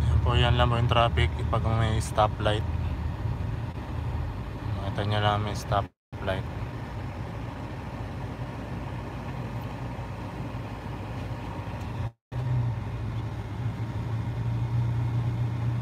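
A car engine hums steadily from inside the cabin as the car drives along.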